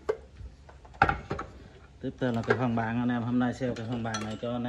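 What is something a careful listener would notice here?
Metal clanks as a hand handles a drill press.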